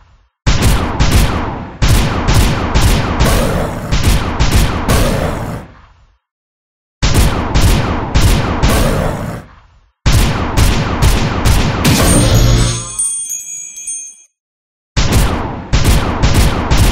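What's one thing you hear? Game sound effects chime and strike.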